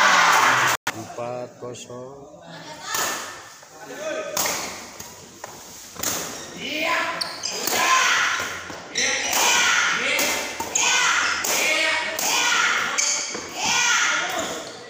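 Badminton rackets strike a shuttlecock with sharp smacks.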